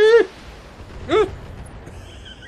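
An explosion bursts with a heavy boom.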